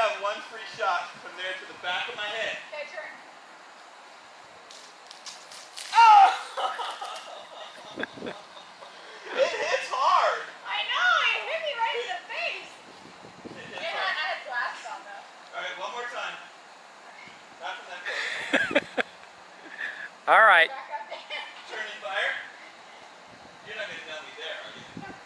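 A man talks and laughs loudly outdoors.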